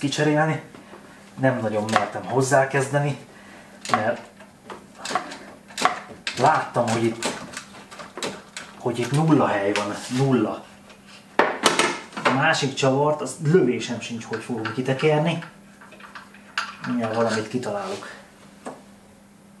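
A man talks calmly and close by, explaining as he goes.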